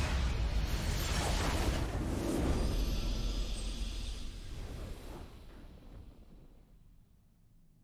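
A loud magical blast bursts with a deep rumble and slowly fades away.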